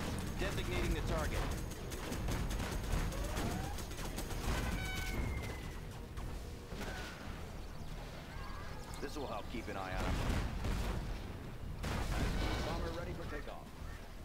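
Shells explode with heavy booming thuds.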